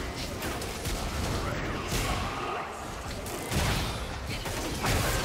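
Magic spell effects whoosh and crackle in a video game battle.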